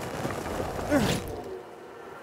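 A heavy thud sounds as a landing hits the ground.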